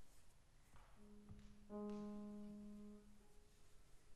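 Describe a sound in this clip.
A low instrument sounds a long, held note.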